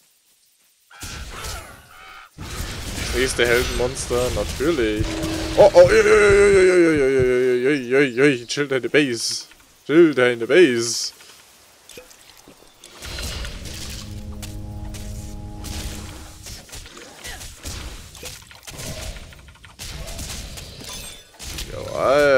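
Fiery spell blasts whoosh and crackle in a game fight.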